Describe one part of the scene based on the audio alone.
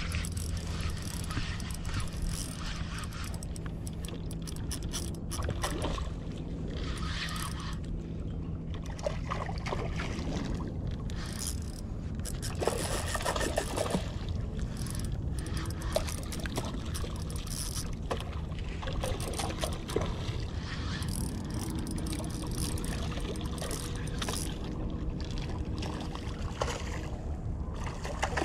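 A fishing reel clicks and whirs as the line is wound in.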